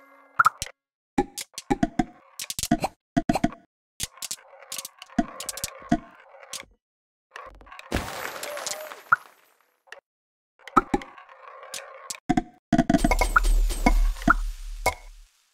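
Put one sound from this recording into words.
Small balls clack and clatter together in quick bursts.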